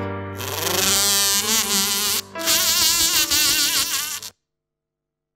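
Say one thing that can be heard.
A piano plays a fast run of notes.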